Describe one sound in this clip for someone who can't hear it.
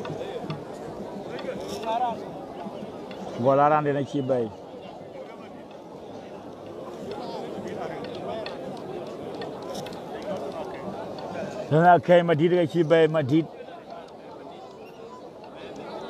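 A large crowd murmurs outdoors in the distance.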